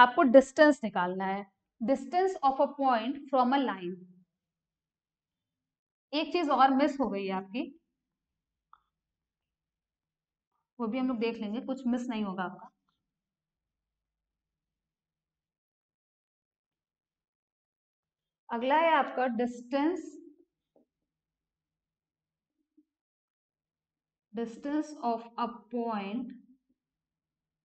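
A young woman speaks calmly in short bursts, as if explaining, close to a microphone.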